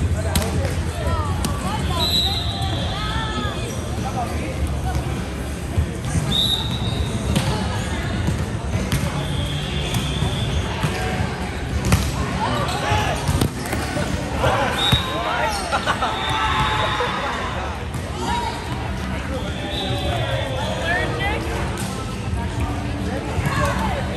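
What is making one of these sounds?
Young men and women chat and call out in a large echoing hall.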